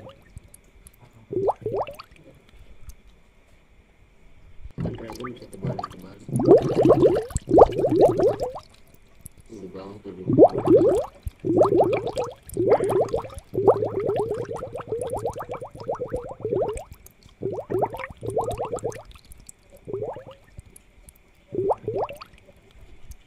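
An aquarium air pump hums steadily.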